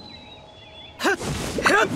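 A sword swings with a fiery whoosh.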